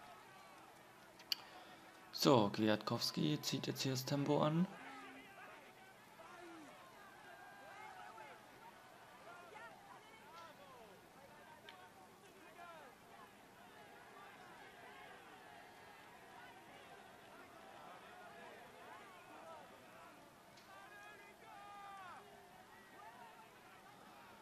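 A roadside crowd cheers and shouts.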